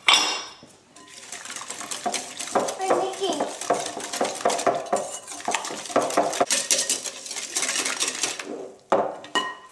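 A whisk beats batter briskly against a bowl.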